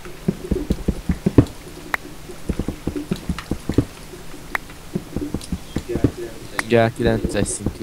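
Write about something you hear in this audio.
Footsteps knock quickly and unevenly on a wooden ladder.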